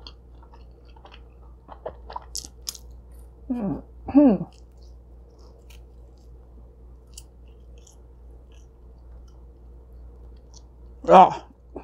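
A young woman chews food with wet, crunchy mouth sounds close to a microphone.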